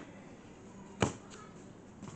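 A football is kicked hard with a sharp thud.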